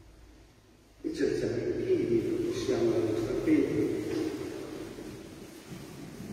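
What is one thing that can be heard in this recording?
An elderly man sings a chant through a microphone in a large echoing hall.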